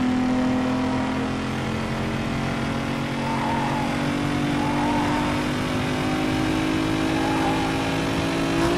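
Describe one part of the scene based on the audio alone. A sports car engine roars at high speed, its pitch slowly rising.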